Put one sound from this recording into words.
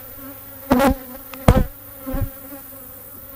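A wooden frame knocks and scrapes against a hive box as it is lifted out.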